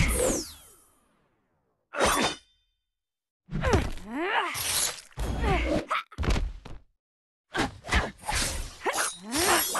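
Punches and kicks land with heavy thuds and whooshes.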